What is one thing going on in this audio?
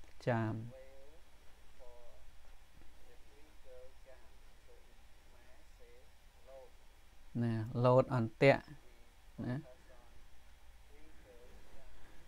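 A man speaks slowly and calmly into a microphone, with long pauses.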